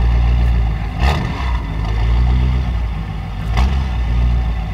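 A car exhaust pops sharply.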